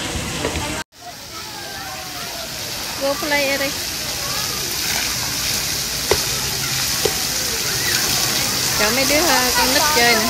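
Water splashes steadily from fountains.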